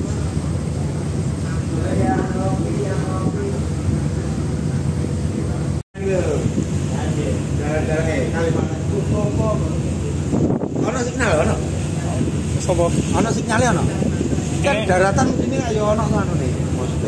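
Water churns and splashes along the side of a moving ship.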